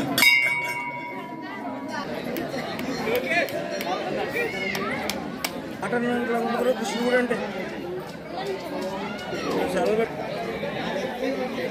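A crowd of people chatters nearby.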